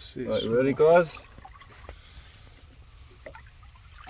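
Water splashes as a fish is dropped back in.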